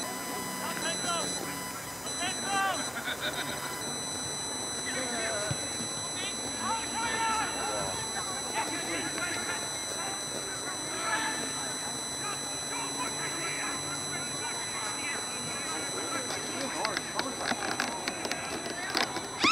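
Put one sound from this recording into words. Players call out to each other across an open field.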